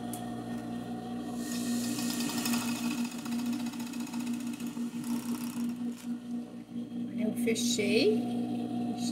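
A sewing machine hums and whirs steadily as it stitches fabric.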